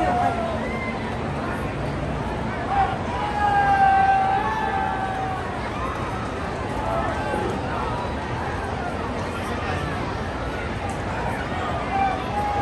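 A large stadium crowd murmurs and chatters steadily all around, outdoors.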